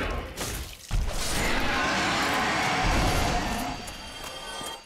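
A dragon breathes a loud hissing blast.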